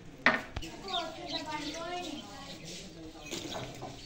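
Liquid is poured into a metal pot.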